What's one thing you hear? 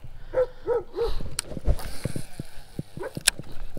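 A baitcasting reel's spool whirs as line pays out on a cast.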